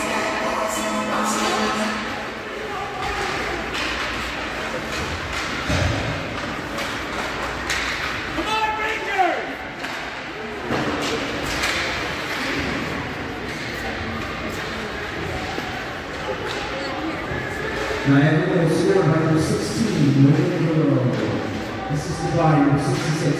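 A crowd of spectators murmurs and calls out in a large echoing arena.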